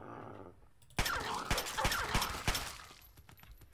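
A submachine gun fires in short bursts.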